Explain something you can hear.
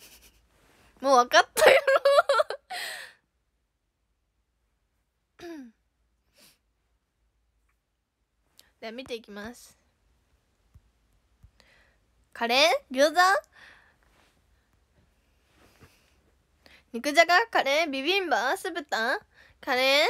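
A young girl talks close to a microphone in short, lively bursts with pauses.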